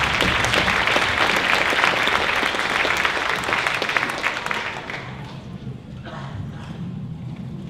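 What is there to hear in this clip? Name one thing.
Children chatter quietly.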